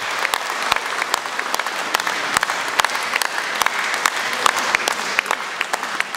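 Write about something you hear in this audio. An audience applauds in a large echoing hall.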